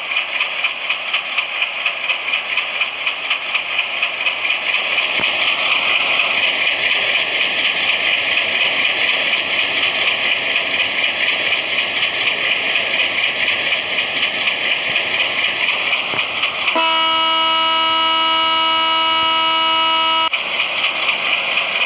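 A train engine hums steadily.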